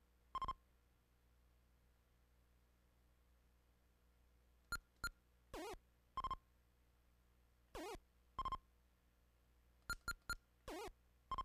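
Short electronic game beeps sound now and then.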